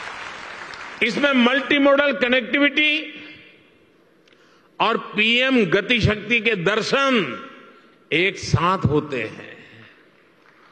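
An elderly man speaks slowly and deliberately through a microphone in a large echoing hall.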